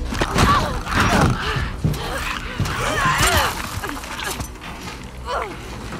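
Monstrous figures shriek and snarl up close during a fight.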